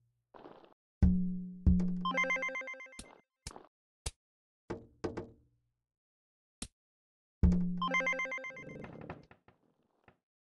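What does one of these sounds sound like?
Bright game chimes ring out.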